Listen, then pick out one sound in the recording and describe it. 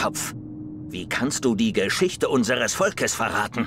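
A man speaks in a deep, menacing voice.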